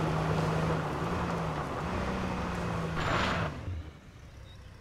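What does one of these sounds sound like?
A car engine hums and revs while driving.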